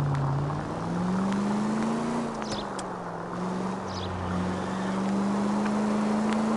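A car engine hums steadily, rising and falling slightly in pitch.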